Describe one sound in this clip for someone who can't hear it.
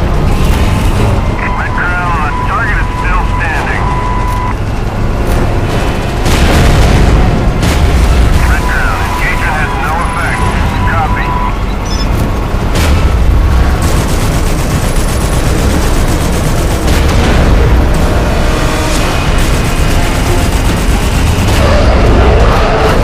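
A tank engine rumbles deeply and steadily.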